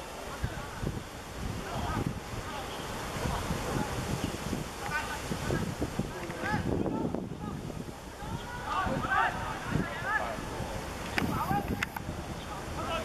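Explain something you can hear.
Young men shout to one another on an open outdoor field.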